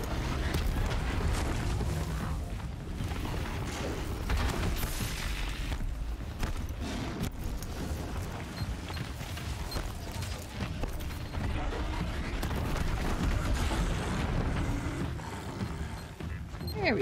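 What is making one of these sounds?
Deep rumbling blasts boom and crackle.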